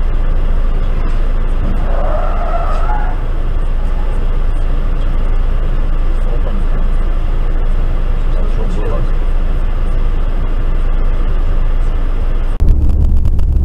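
A car engine idles with a low hum inside the car.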